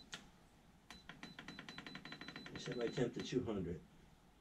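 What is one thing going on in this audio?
An electronic control panel beeps quickly as its buttons are pressed.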